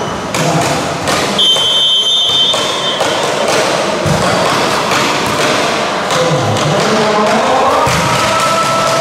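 A volleyball is struck hard several times in a large echoing hall.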